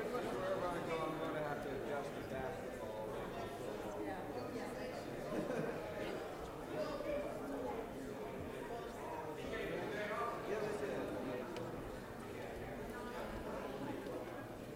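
Many men and women chatter at once, in a large echoing hall.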